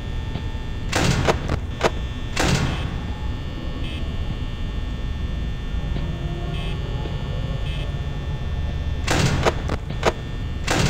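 A fan hums steadily.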